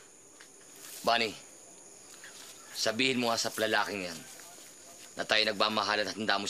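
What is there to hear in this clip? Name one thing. A young man speaks with feeling, close by.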